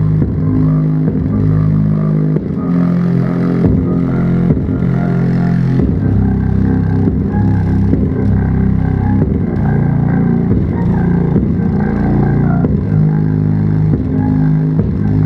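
A subwoofer plays loud, booming bass music with a thumping beat.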